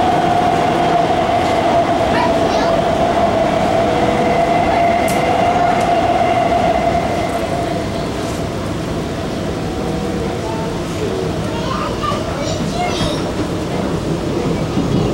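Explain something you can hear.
A train rumbles and hums steadily as it runs along the track.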